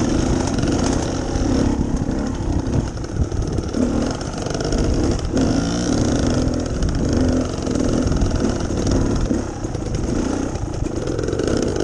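A dirt bike engine revs and drones close by, rising and falling.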